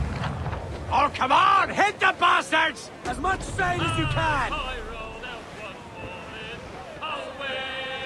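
Waves crash and splash against a ship's hull.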